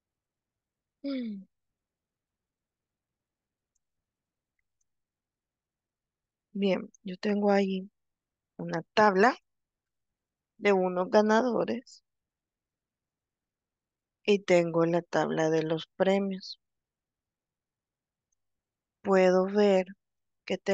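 A young woman speaks calmly over an online call, in short phrases with pauses.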